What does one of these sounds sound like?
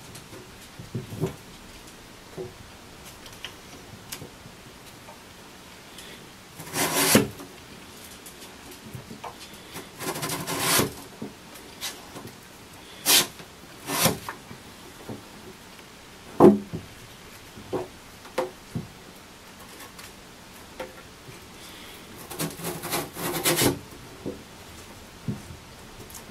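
Small knocks and taps sound sharply now and then.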